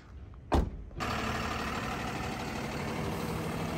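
A truck engine idles with a steady rumble.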